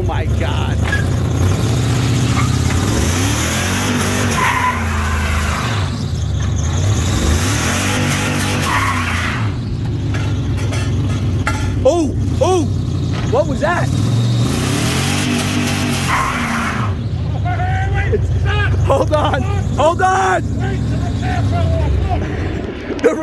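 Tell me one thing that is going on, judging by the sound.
A pickup truck engine rumbles and revs nearby.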